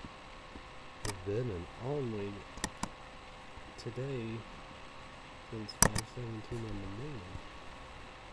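A young man speaks slowly and quietly, close to a webcam microphone.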